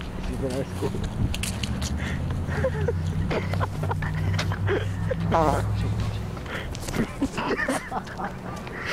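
A man talks casually outdoors.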